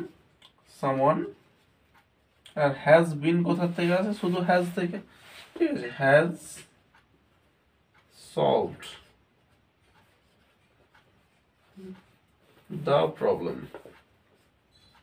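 A man speaks calmly and clearly in short phrases with pauses.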